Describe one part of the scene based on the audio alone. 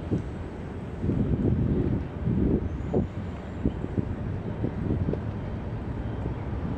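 Wind blows and gusts outdoors.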